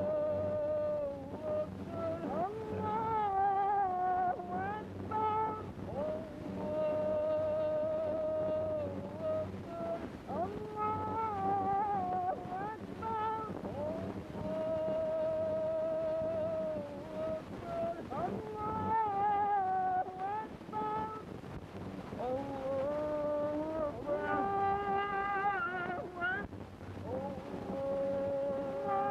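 A man chants slowly in long, wavering phrases, heard through an old, hissy recording.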